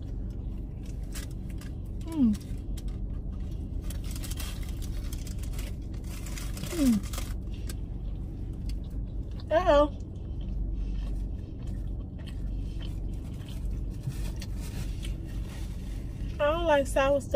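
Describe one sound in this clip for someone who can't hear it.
A young woman chews food close by.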